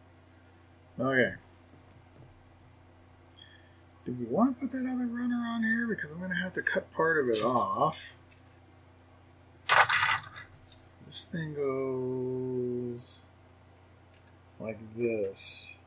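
A man talks calmly through a headset microphone.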